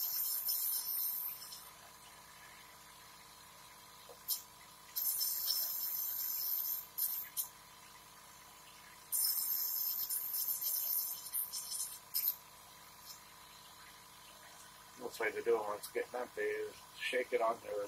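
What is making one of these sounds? A nebulizer machine hums steadily.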